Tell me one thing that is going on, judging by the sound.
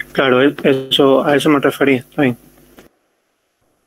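A young man talks through an online call.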